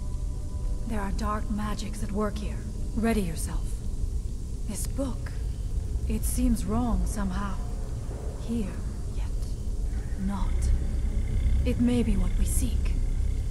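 A woman speaks calmly and gravely, close by.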